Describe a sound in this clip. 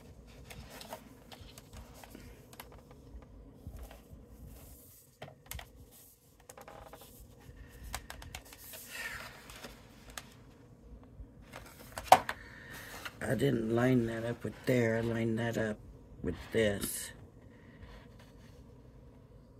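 Stiff card paper rustles and slides under hands.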